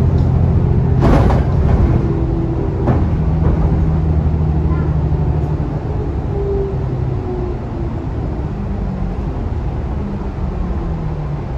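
A bus engine hums steadily, heard from inside.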